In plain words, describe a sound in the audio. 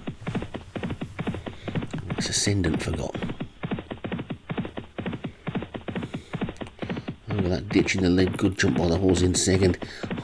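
Horses' hooves drum rapidly on turf as they gallop.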